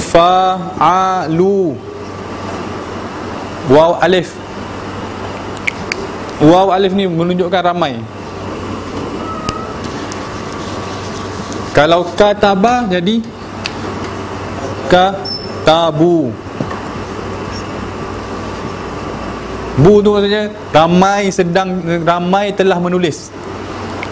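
A man speaks slowly and clearly in a room, in short phrases with pauses.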